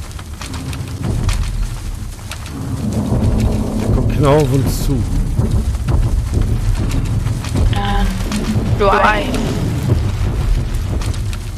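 A bicycle rolls over rough grassy ground.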